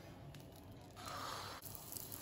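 Batter sizzles in hot oil in a pan.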